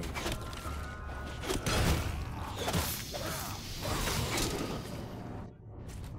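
A weapon strikes a creature with heavy thuds.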